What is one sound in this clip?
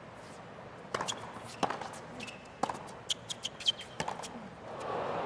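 Tennis balls are hit back and forth with sharp pops.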